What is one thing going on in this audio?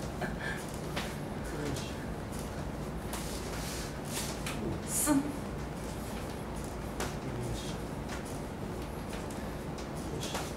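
Hands rub and press against fabric with a soft rustle.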